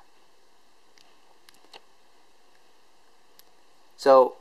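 Small wire clips click faintly.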